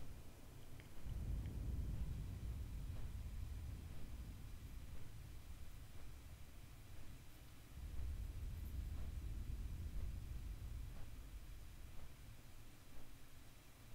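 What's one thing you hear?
Wind rushes past steadily during flight.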